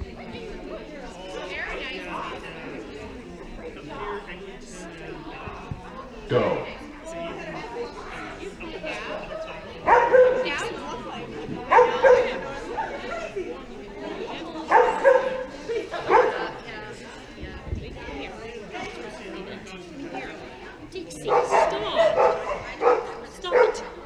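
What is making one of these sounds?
A woman calls out to a dog with animation, some way off in a large echoing hall.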